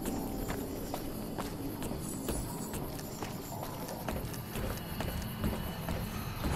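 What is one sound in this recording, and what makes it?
Footsteps clank steadily on a metal walkway.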